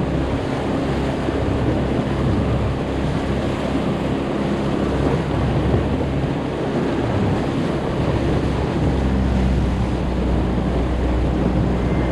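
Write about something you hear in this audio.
An outboard motor drones steadily at speed.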